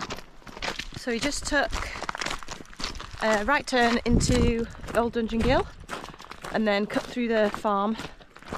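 A young woman talks to a close microphone.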